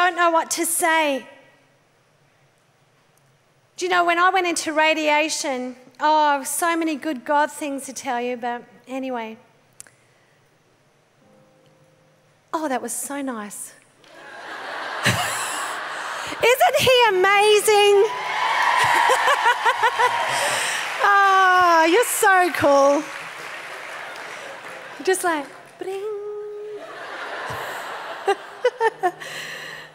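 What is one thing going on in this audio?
A middle-aged woman speaks with animation into a microphone, heard over loudspeakers in a large hall.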